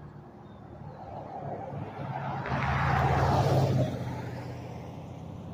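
A pickup truck roars past close by and fades.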